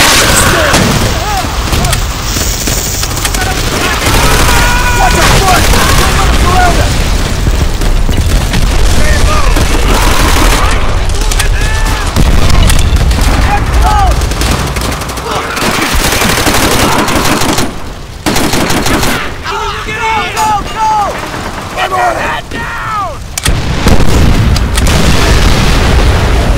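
Rapid gunfire rattles steadily, with short pauses.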